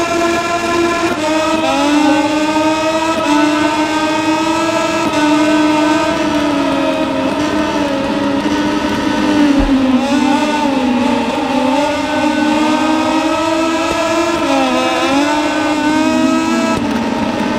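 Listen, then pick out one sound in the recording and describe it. Racing motorcycle engines whine loudly, revving up and down as they shift gears.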